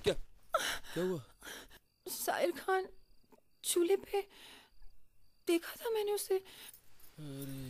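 A young woman speaks with agitation, close by.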